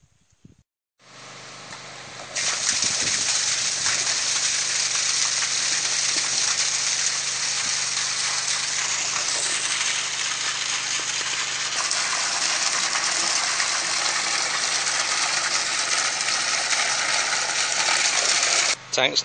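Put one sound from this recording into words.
Water gushes from a pipe and splashes loudly into a pool of water.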